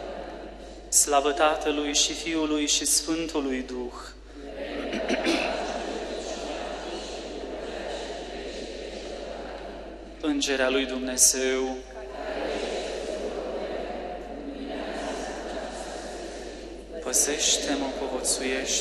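A man sings a chant through a microphone in a large echoing hall.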